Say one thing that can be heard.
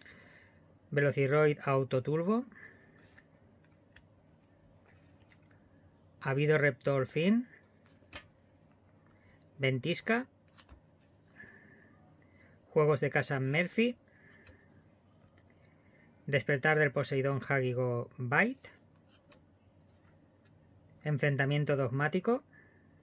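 Playing cards slide and rustle softly against each other.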